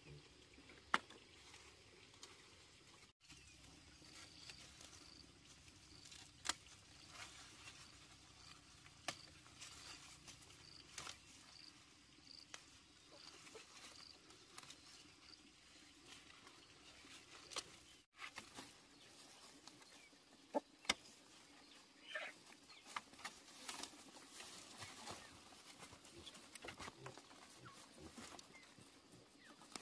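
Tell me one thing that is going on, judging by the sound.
Leaves rustle as hands pick beans from a vine.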